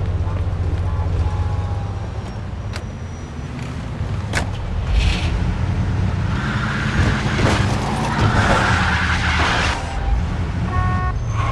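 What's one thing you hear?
A car engine rumbles and revs as the car drives off.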